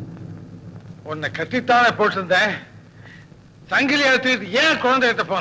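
A man calls out loudly, with animation.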